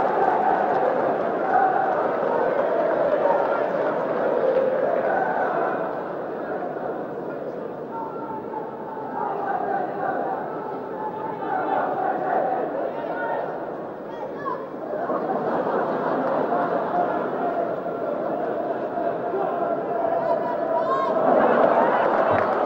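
A stadium crowd murmurs and chatters in a large open space.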